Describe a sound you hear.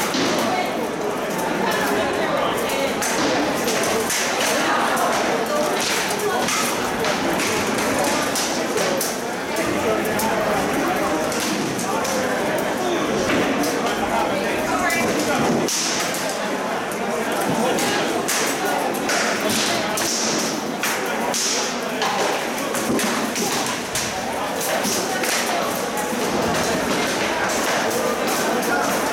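A crowd murmurs and chatters throughout.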